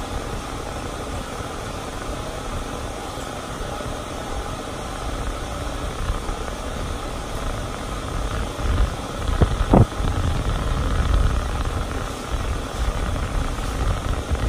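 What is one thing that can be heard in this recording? A brush rustles softly through a dog's thick fur.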